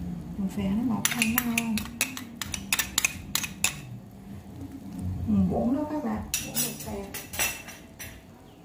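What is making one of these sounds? A metal ladle clinks against a pot and a bowl.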